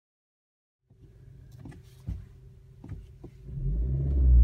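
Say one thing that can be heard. A turbocharged four-cylinder car engine idles.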